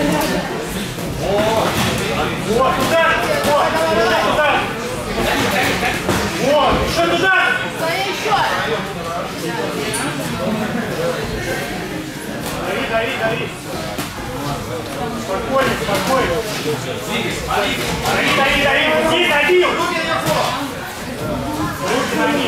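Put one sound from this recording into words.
Boxing gloves thud against bodies and gloves.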